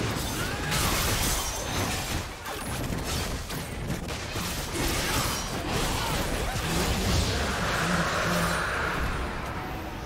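Magic blasts whoosh and crackle in a busy video game fight.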